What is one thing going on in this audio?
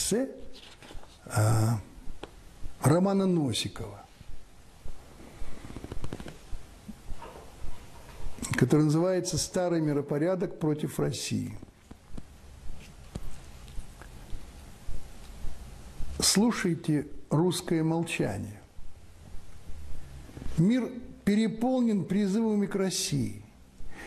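An elderly man reads out calmly and steadily, close to a microphone.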